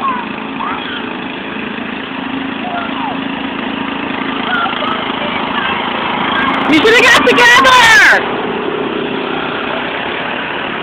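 A riding lawn mower engine hums steadily nearby.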